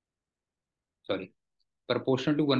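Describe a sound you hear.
A man speaks calmly into a microphone, as if teaching over an online call.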